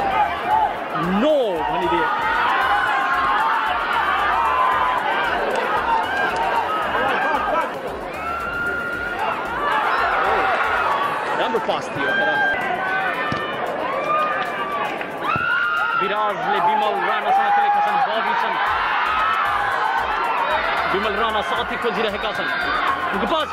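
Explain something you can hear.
A large crowd murmurs and cheers outdoors.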